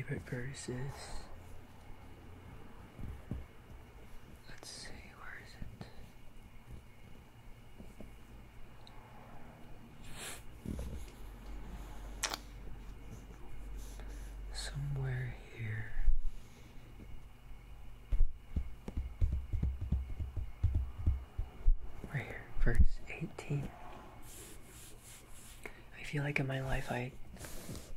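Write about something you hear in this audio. Fingertips softly rub and scratch across a paper page.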